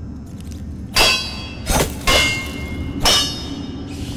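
A blade clangs against metal bars.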